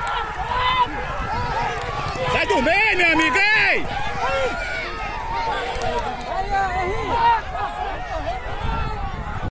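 A large outdoor crowd shouts and cheers loudly.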